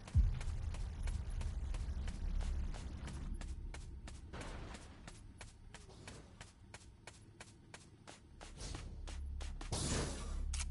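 Quick footsteps run over grass and dirt at a steady pace.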